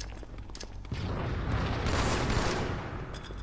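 A video game explosion booms loudly.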